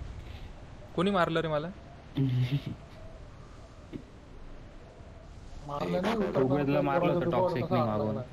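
A young man speaks close to a microphone with animation.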